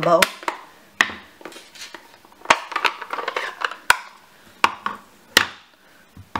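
A plastic ink pad case clicks and taps on a table.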